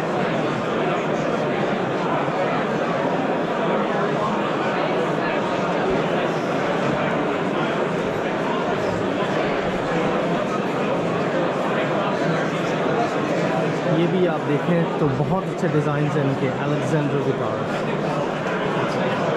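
Many people chatter in a large, busy hall.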